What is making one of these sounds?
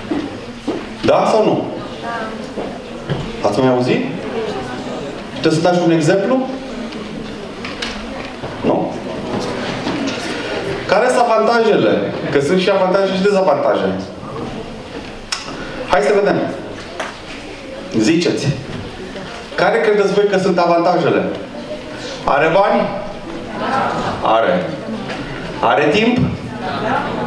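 A man speaks with animation through a microphone in a room with an echo.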